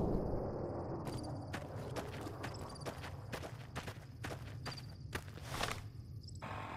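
Footsteps run over dirt.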